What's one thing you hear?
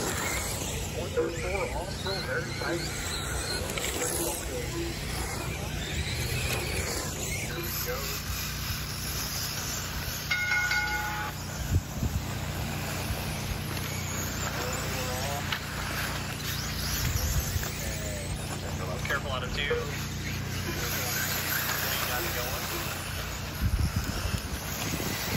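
Small tyres crunch and skid on loose dirt.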